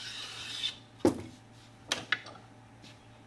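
A metal plane knocks down onto a wooden bench.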